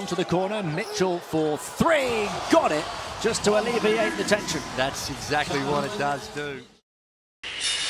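A large crowd cheers in an echoing arena.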